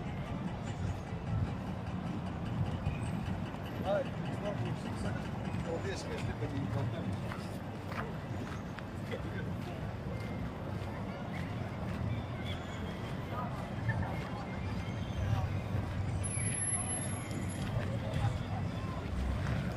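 A low city hum and murmur fill an open square outdoors.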